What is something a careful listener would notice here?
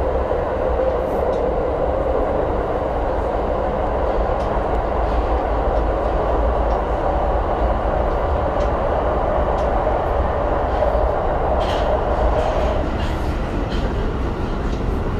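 Carriage fittings rattle and click.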